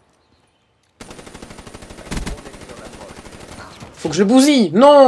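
A rifle fires rapidly in a long burst.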